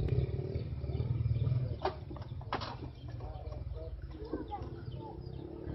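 A motorbike engine rumbles nearby as it rides past.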